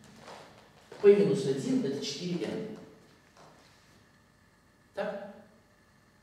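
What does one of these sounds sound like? An older woman speaks calmly in an echoing room.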